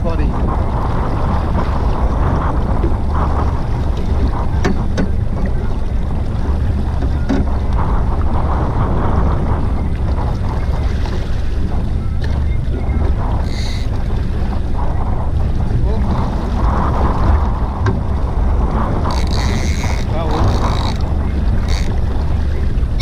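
A man talks calmly near the microphone.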